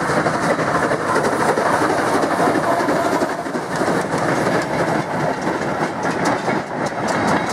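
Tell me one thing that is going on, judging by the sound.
Train wagons rumble and clatter over the rails.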